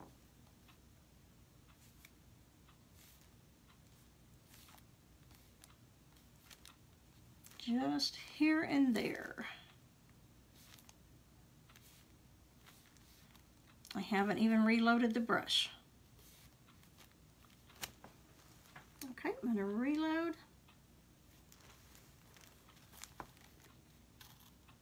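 A paintbrush taps and brushes softly on a board.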